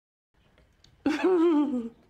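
A woman speaks with animation.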